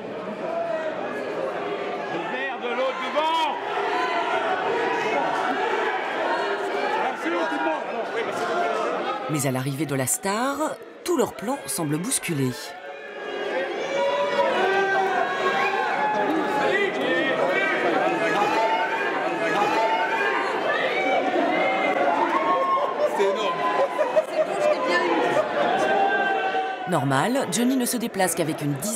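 A large crowd chatters and calls out loudly close by.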